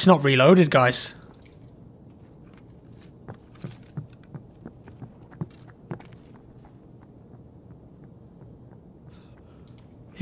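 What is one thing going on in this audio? Footsteps tap softly on a wooden floor.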